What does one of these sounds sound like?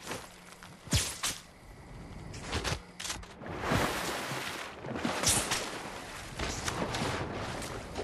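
Water splashes as someone wades and swims.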